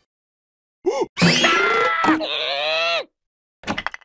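A cartoon creature screams loudly.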